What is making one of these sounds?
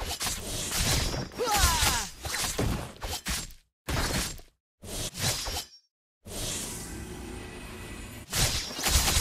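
Video game fight sound effects of blows and magic bursts clash in quick succession.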